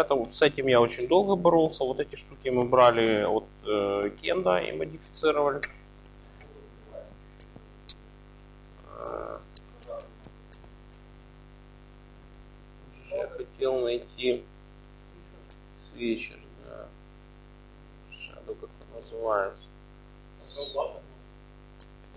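A man speaks calmly and nearby, with pauses.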